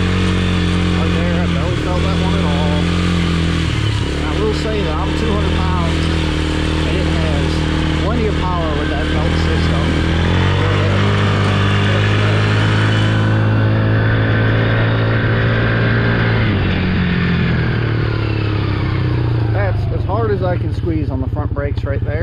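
A quad bike engine runs and revs up and down close by.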